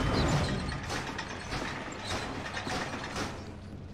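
Small footsteps creak softly on wooden floorboards.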